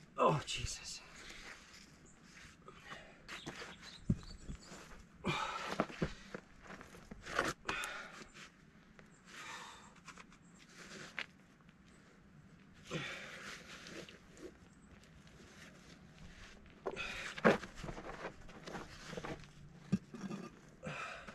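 Heavy rocks scrape and grind against each other.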